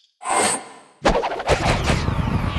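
A second spell bursts with a bright whooshing rush.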